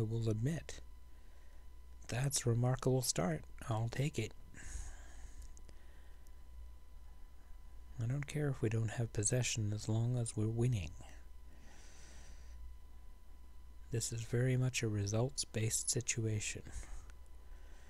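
An older man talks calmly and close into a microphone, in short bursts with pauses.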